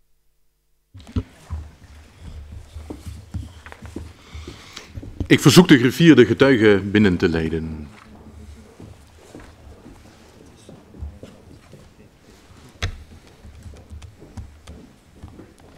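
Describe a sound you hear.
Several people murmur and shuffle quietly in the room.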